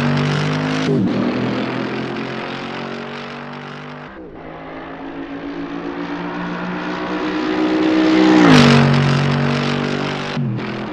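A car's engine pitch drops sharply as it shifts gears.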